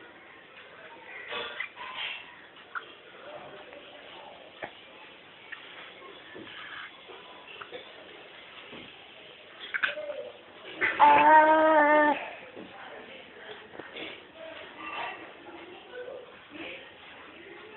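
A toddler chews and sucks on fruit close by.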